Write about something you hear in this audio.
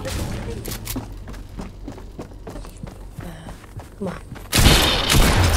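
A sword hums and clashes in a video game.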